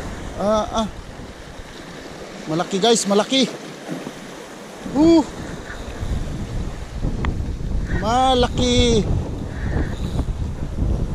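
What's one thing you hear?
Waves splash against rocks below.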